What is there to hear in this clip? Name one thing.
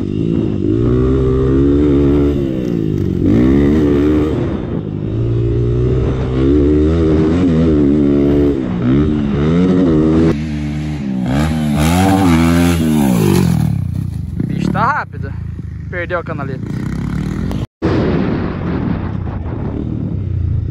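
A dirt bike engine revs hard, rising and falling in pitch as it shifts gears.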